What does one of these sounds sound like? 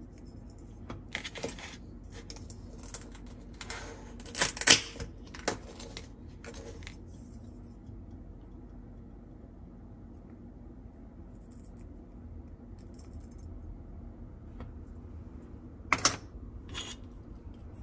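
Plastic toy pieces click and clack together as they are handled.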